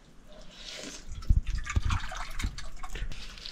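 Water pours from a kettle into a cup.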